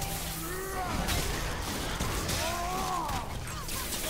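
An axe strikes and slashes through enemies.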